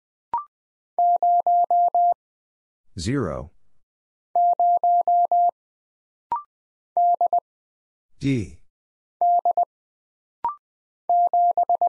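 A telegraph key taps out steady Morse code beeps.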